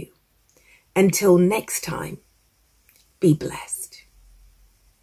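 A woman speaks warmly and close to a microphone.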